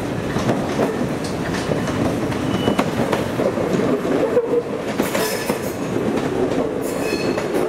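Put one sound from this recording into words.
An electric train rolls slowly past close by, its wheels rumbling and clicking over the rails.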